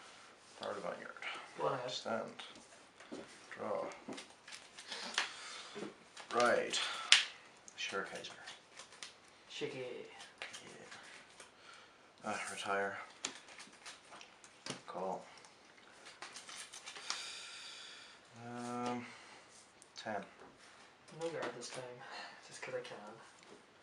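Playing cards are laid down on a table with soft taps.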